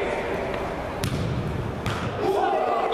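A football thuds when kicked.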